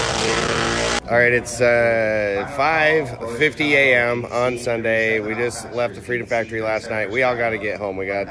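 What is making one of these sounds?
A middle-aged man talks cheerfully, close to the microphone.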